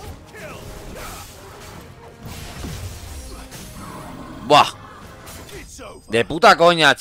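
Game combat sounds whoosh and clash.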